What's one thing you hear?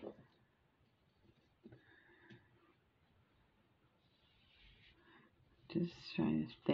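Small beads rattle and click softly as a hand spreads them across a surface.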